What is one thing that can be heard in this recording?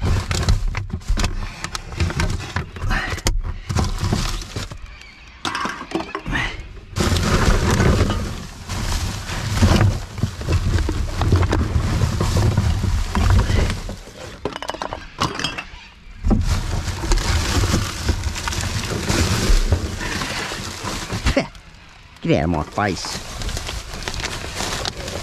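Plastic bags rustle and crinkle as they are rummaged through.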